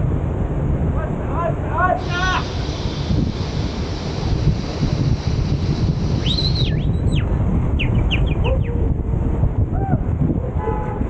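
Young men whoop and shout nearby outdoors.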